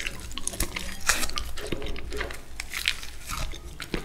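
Soft baked sweet potato skin peels and tears close up.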